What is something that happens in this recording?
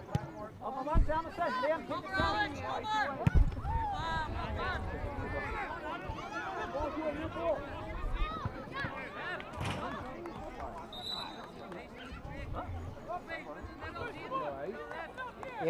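A crowd of spectators outdoors shouts and cheers nearby.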